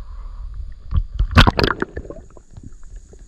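Water gurgles and splashes loudly as something plunges under the surface.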